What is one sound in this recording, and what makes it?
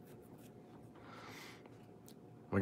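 Playing cards slide and rustle softly against each other.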